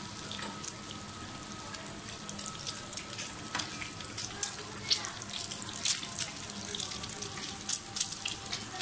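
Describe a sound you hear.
Butter sizzles and crackles in a hot pan.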